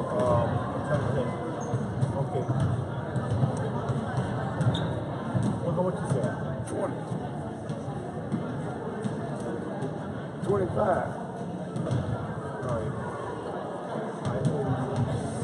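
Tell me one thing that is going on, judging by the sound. A crowd of people chatter in a large echoing gym.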